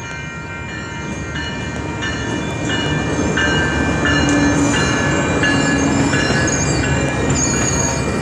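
A train rumbles loudly past, close by.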